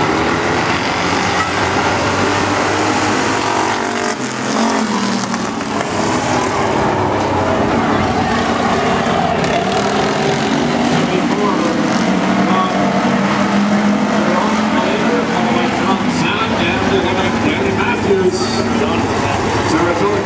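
A crowd of spectators murmurs and cheers nearby.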